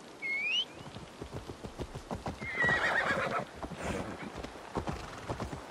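Horse hooves thud steadily on a dirt path.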